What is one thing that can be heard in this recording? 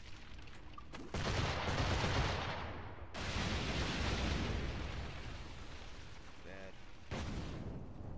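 Cannons boom in heavy bursts, each dying away into a rumble.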